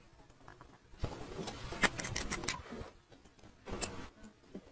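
A watch crown clicks as it is turned.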